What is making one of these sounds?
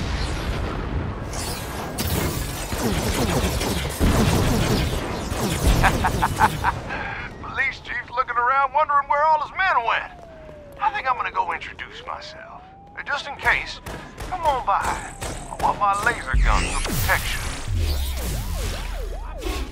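Energy blasts crackle and boom loudly.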